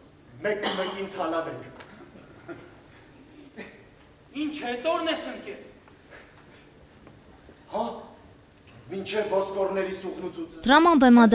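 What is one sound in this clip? A man speaks loudly and expressively in a large hall.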